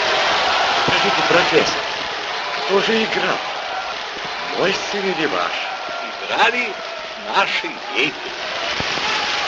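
An elderly man shouts out with excitement.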